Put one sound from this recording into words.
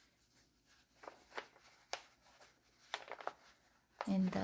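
Yarn rustles softly as it is pulled through with a crochet hook.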